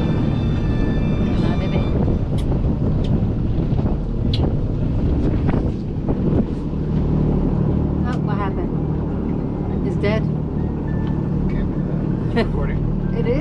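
A motorboat engine drones as the boat cruises on open water.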